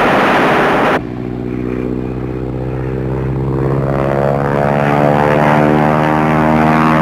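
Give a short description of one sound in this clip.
A plane engine hums steadily.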